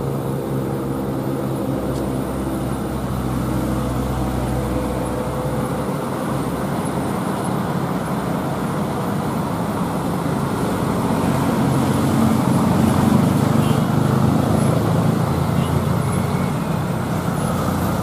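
Motorcycle engines buzz past nearby.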